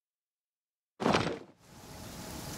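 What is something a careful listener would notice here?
A soft whoosh sweeps past as a menu closes.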